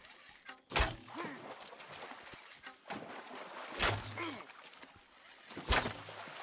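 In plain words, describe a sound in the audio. Shallow water splashes under wading footsteps.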